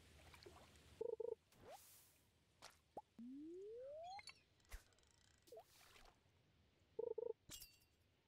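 A bobber splashes into water.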